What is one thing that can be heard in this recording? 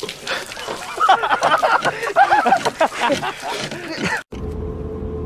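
A man laughs hard up close.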